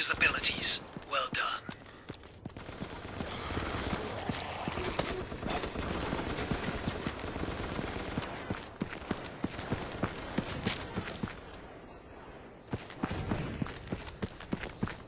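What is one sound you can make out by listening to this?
Gunshots crack in rapid bursts, near and far.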